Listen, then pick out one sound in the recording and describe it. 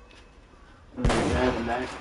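A flare ignites and hisses loudly.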